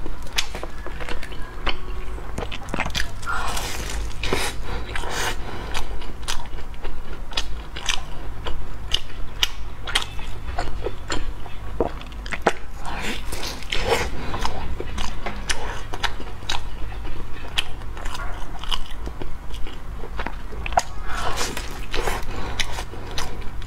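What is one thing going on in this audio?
A young woman chews and crunches crispy bread close to a microphone.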